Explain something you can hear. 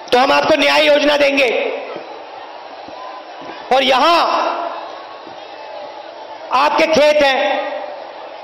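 A man speaks forcefully in short bursts through a microphone and loudspeakers, echoing outdoors.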